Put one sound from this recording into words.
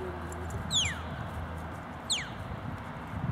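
A shepherd gives short, sharp falling whistles in the distance.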